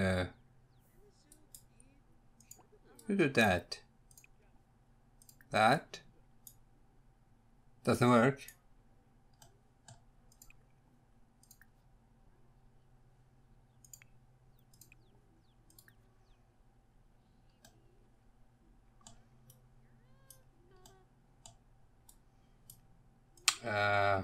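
A man speaks in short bursts close to a microphone, with long pauses between.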